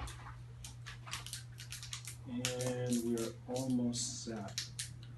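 Plastic wrapping crinkles in handling.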